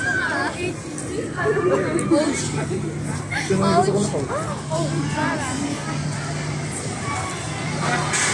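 A crowd of children and adults chatter nearby, outdoors.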